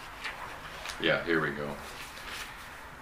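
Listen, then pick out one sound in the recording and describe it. An elderly man speaks briefly and quietly close by.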